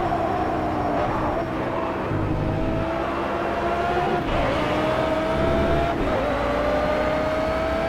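A race car engine roars, rising in pitch through each gear and dropping at every gear change.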